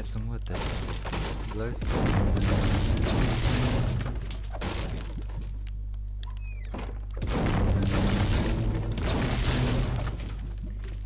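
A pickaxe strikes wood again and again.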